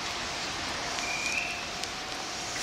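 Train brakes squeal briefly as the train comes to a stop.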